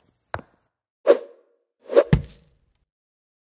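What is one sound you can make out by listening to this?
Something drops with a whooshing thud.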